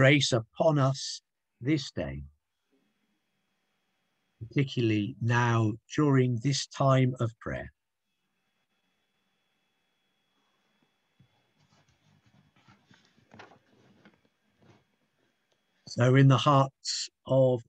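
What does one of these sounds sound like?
A man reads out calmly through an online call.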